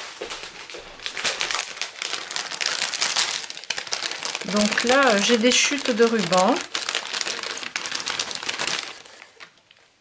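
Plastic wrapping crinkles loudly.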